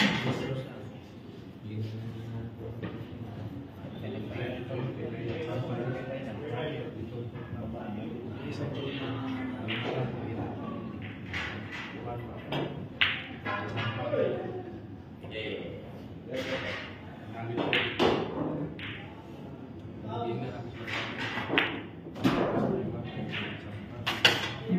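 Pool balls clack against each other and thud off the cushions.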